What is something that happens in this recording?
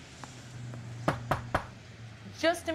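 Knuckles knock on a wooden door.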